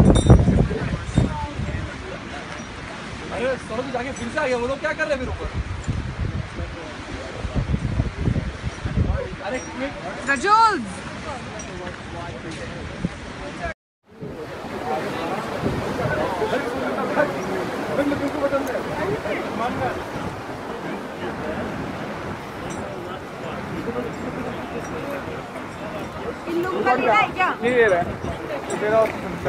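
Several men and women talk and call out nearby.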